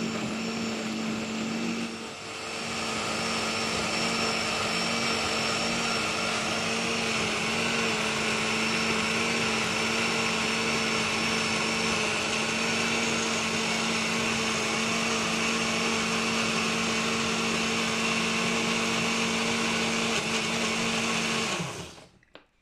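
A blender whirs loudly at high speed.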